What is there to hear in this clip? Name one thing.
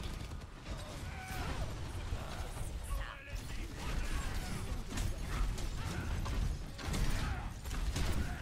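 A man talks into a microphone with animation, close by.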